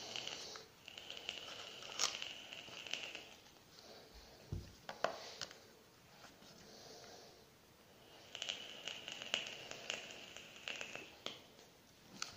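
A man exhales vapour with a long hissing breath.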